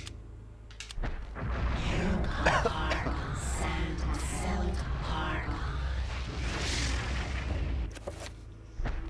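A magical spell swells with a shimmering whoosh.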